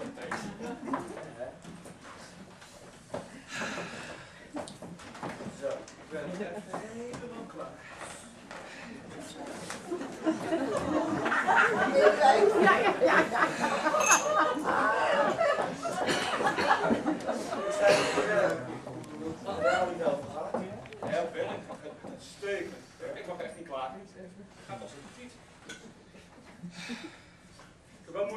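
Women speak and act, heard from the audience in the room.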